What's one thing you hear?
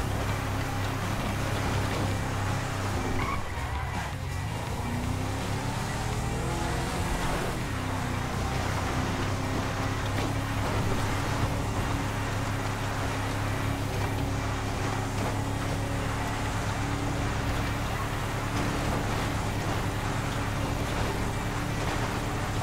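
Tyres crunch over a rough dirt road.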